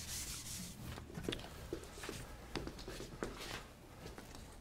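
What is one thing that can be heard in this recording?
A man's footsteps tap across a hard floor.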